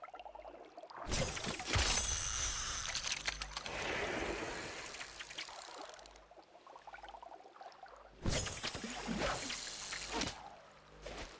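Water splashes and churns as someone wades through it.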